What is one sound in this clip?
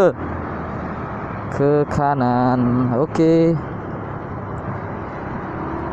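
A motorcycle engine hums as the motorcycle rides along.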